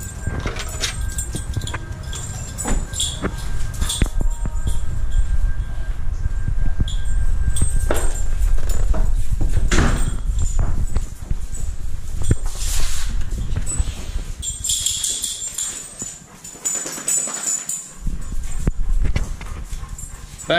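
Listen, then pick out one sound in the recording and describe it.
Clothing rustles and brushes close to the microphone.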